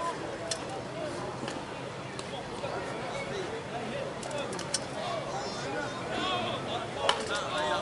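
Men talk and call out outdoors at a distance.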